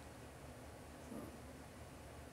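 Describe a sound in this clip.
A young woman speaks softly and briefly, close to a microphone.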